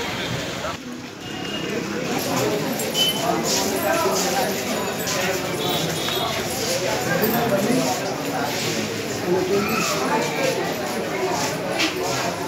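A crowd of men and women murmurs and chatters.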